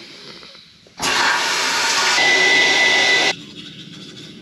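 A hair dryer blows loudly.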